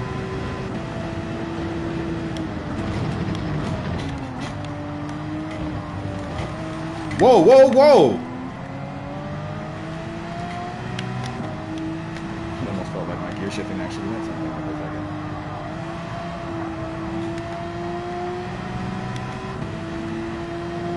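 A racing car engine hums steadily, its pitch rising and falling as the car speeds up and slows down.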